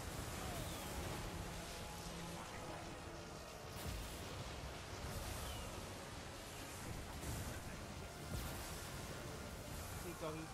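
A large battle roars with a dense, steady clamour of fighting.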